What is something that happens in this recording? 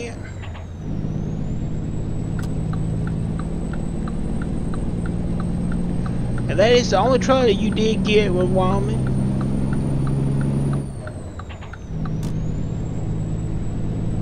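A truck engine drones steadily.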